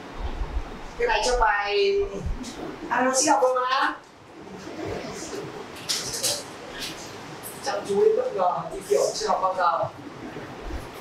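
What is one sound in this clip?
A man speaks calmly to a room, some distance away.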